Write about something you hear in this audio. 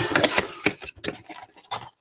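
Cardboard rips as a box is torn open.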